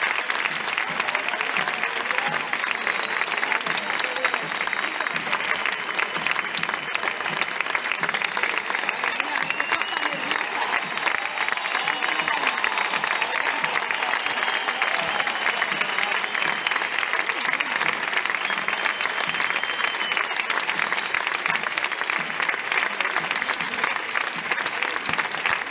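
Small hand drums beat a rhythm.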